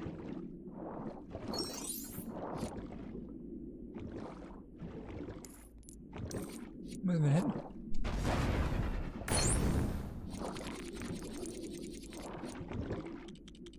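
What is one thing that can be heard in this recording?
Coins chime as they are picked up.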